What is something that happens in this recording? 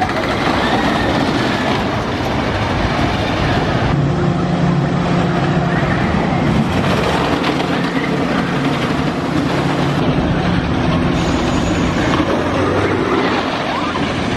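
A roller coaster train rumbles and clatters along a wooden track.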